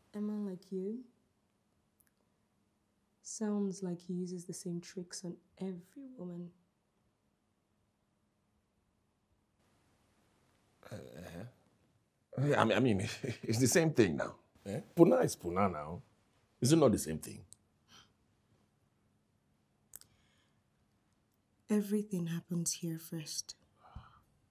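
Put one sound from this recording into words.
A man speaks quietly and calmly up close.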